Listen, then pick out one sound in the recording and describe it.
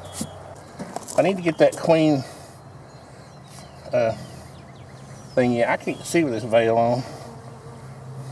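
A bee smoker puffs with soft bursts of air.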